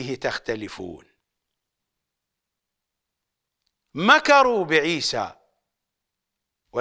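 An older man speaks with animation into a microphone, pausing between phrases.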